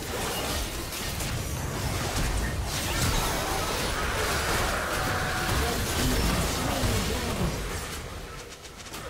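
Game spell effects burst and crackle during a fight.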